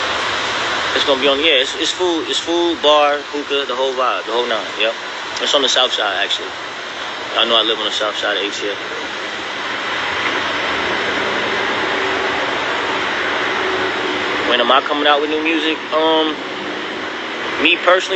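A man speaks casually and close to a phone microphone.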